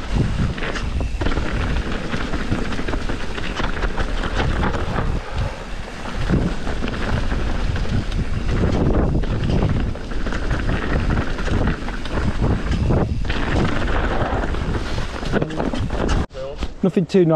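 Bike tyres rumble and crunch over a rough dirt trail.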